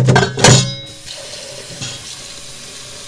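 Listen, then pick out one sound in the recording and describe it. Tap water runs and splashes onto noodles.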